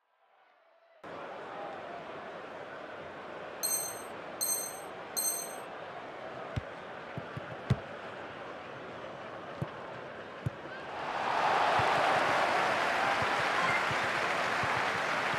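A stadium crowd roars steadily and swells louder.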